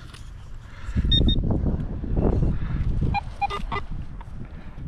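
A metal detector gives short high beeps.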